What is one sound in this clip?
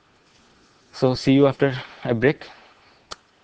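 A young man speaks briefly and calmly, close to a microphone.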